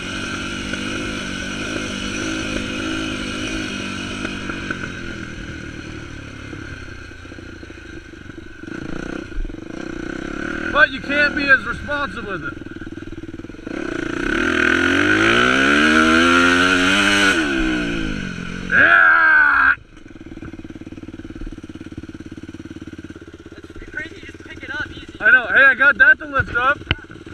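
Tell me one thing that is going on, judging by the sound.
A dirt bike engine drones and revs up and down close by.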